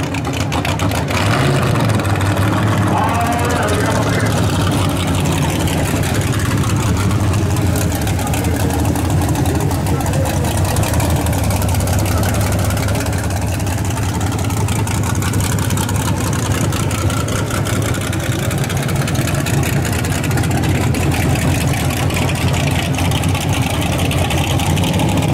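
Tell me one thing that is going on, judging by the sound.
A loud race car engine rumbles and revs throughout.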